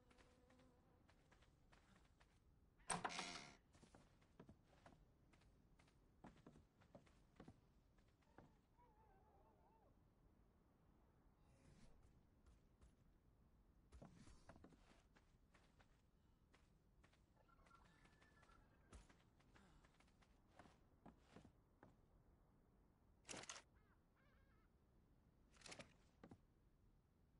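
Quick clicks and soft thuds sound one after another.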